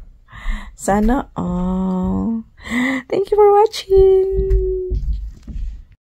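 A woman exclaims and talks with excitement close by.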